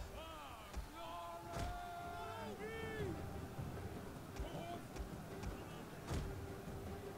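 Heavy projectiles crash and thud into buildings at intervals.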